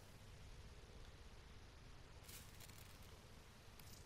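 Short menu clicks tick as the list scrolls.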